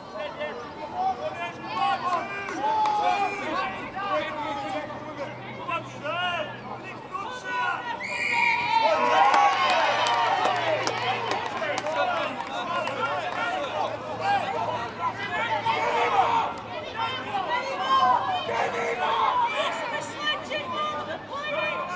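Young men shout and call to each other outdoors on an open field.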